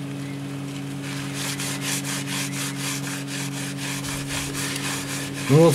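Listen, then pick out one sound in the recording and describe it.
A cloth rubs back and forth across a phone's glass.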